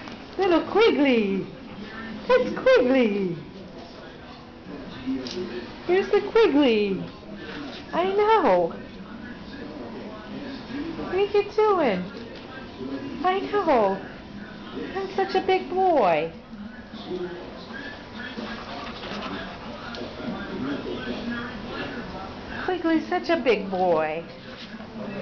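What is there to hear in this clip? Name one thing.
A small dog growls and whines playfully up close.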